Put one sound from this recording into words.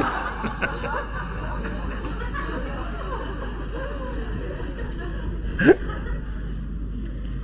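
A middle-aged man speaks cheerfully into a microphone.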